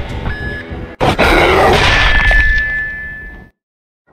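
A loud, harsh screech blares suddenly and then cuts off.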